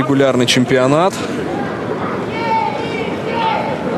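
A crowd murmurs and chants in the distance outdoors.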